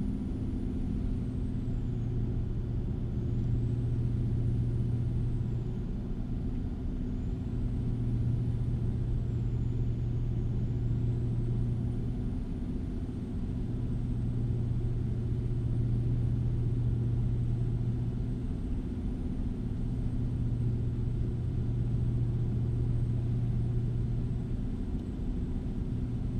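A truck engine drones steadily, rising and falling slightly in pitch.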